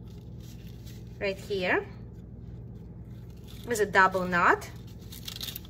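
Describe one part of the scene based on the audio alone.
Paper rustles and crinkles softly as hands fold it.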